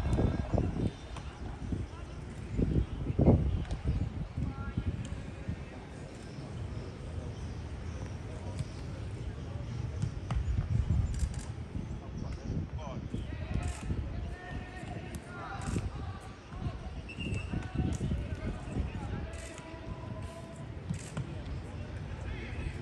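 Footballs thud as players kick them.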